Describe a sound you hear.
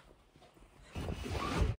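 Cloth rustles right against the microphone.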